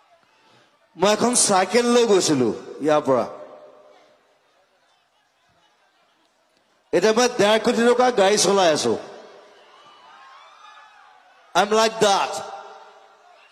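A young man sings loudly into a microphone over a loudspeaker, in bursts with pauses.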